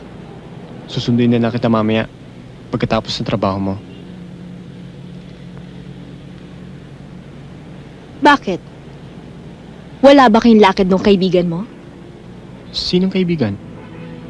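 A man speaks quietly and tensely nearby.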